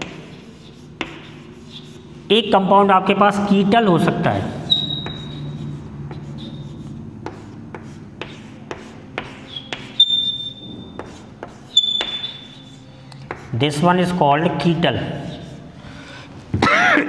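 Chalk taps and squeaks on a blackboard.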